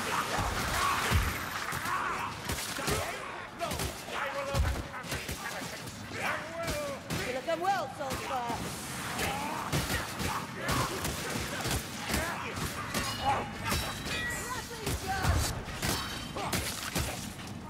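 Creatures screech and squeal as they are hit.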